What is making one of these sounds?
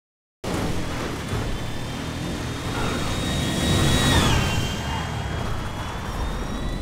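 A jet engine whines loudly nearby, then drops in pitch as it passes.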